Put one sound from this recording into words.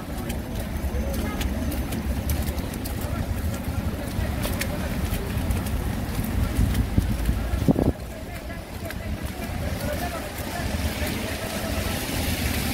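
Footsteps crunch and squelch through slushy snow.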